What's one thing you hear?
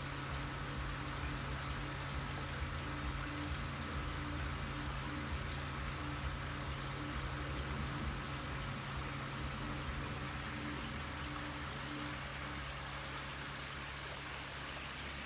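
A pump hums steadily.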